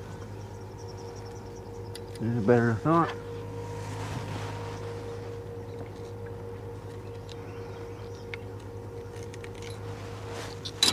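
Fishing gear clicks and rattles in a man's hands.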